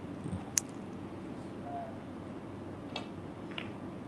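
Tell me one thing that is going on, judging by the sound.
A cue tip strikes a snooker ball with a short tap.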